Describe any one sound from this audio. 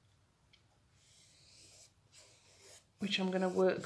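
A paintbrush swishes softly across canvas.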